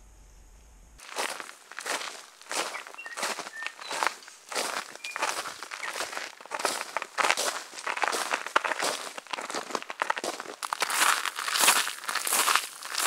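Footsteps crunch on loose gravel in a steady rhythm.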